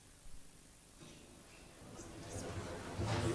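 An audience murmurs and stirs in a large echoing hall.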